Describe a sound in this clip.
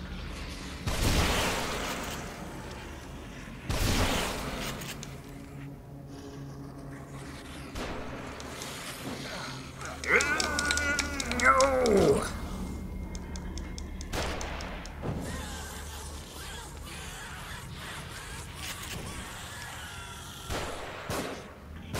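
A gun fires loud, sharp shots.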